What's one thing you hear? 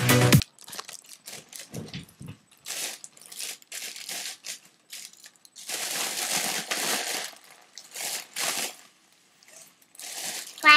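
A foil balloon crinkles in a girl's hands.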